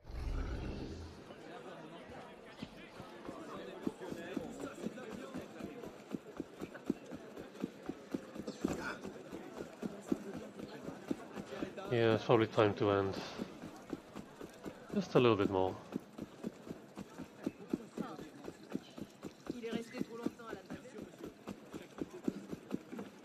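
Footsteps patter quickly on cobblestones as a figure runs.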